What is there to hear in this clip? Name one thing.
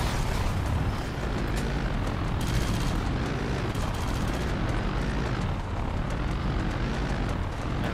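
A heavy vehicle's engine rumbles steadily as it drives.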